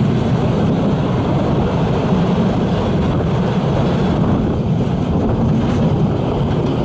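A steam locomotive chuffs steadily.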